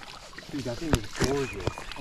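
Water splashes as a fish is netted.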